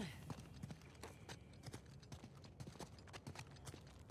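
Footsteps climb stone stairs.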